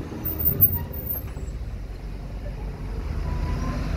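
A city bus drives past.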